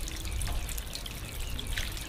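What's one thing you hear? Water sloshes gently as a hand stirs it.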